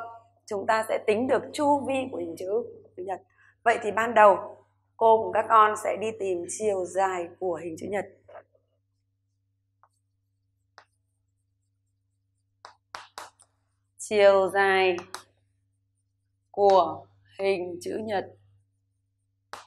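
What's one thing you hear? A middle-aged woman speaks calmly and clearly into a close microphone.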